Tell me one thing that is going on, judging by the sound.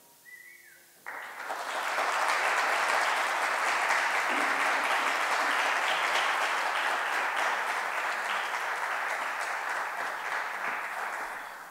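An audience applauds loudly in a large echoing hall.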